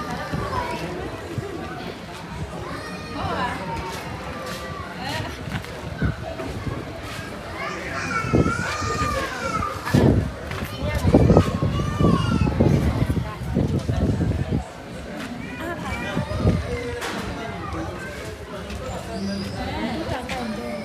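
Several women talk with animation close by, outdoors.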